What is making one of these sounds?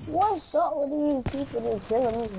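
A sniper rifle fires with a sharp crack.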